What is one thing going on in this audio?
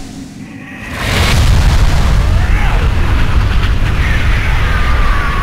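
A jet thruster roars loudly.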